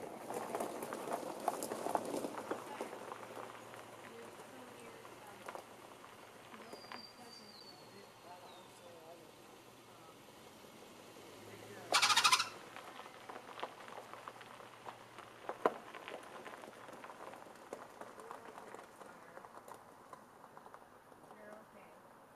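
A car engine runs quietly at low speed.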